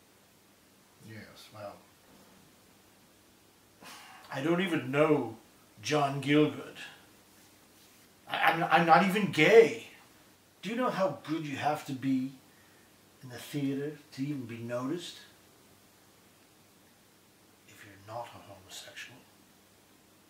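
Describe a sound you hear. An older man speaks calmly and close by.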